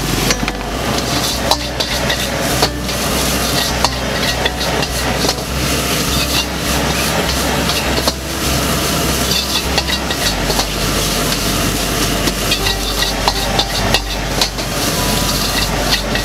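A gas burner roars steadily.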